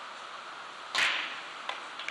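A cue sharply strikes a billiard ball.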